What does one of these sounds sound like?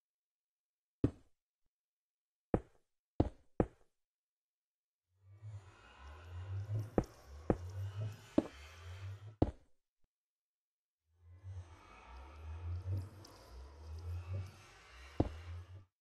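Blocks are set in place with short, dull knocks, one after another.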